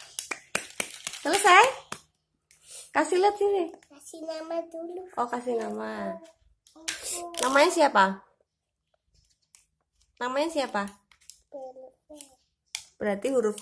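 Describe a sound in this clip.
A young girl speaks up close, with animation.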